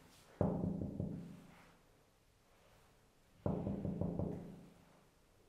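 A man knocks firmly on a wooden door.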